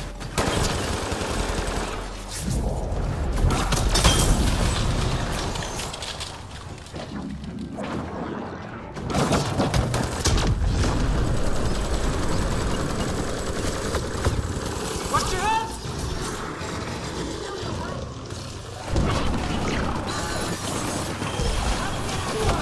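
Energy blasts boom and whoosh.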